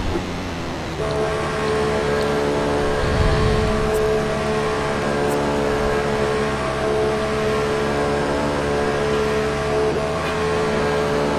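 A racing car engine drones at a steady pitch.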